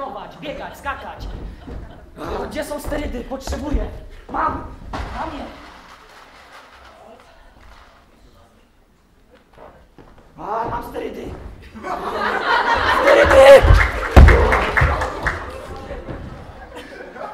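A young man speaks loudly and with emotion in a large echoing hall.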